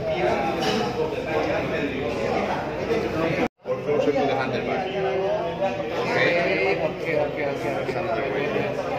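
Several people chatter in the background.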